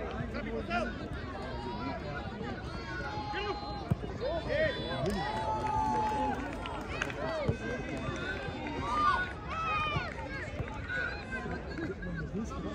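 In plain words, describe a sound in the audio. A football is kicked with a thump.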